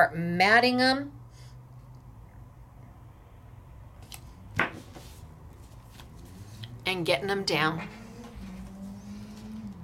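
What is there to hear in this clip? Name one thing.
A paper card taps and slides against a table.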